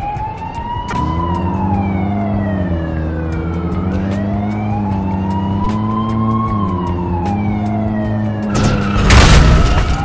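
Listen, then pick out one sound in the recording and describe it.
A sports car engine hums and revs as it drives.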